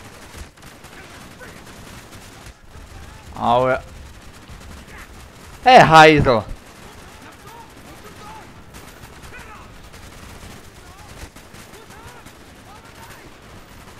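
A rifle fires in rapid shots.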